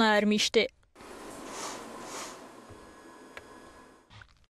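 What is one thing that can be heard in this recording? A laboratory machine hums and whirs softly.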